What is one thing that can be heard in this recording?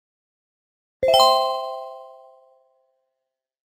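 A bright chime rings out and slowly fades.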